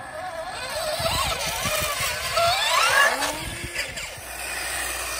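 Toy truck tyres crunch over loose dirt.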